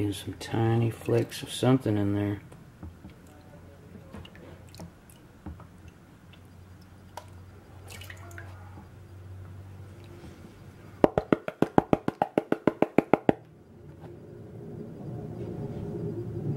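Water swirls and sloshes in a plastic pan.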